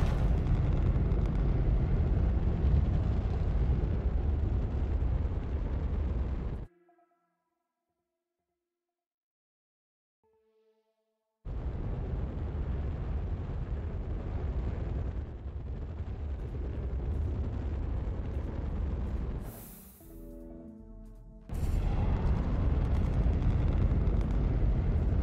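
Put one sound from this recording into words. A rocket engine roars with a deep, steady rumble.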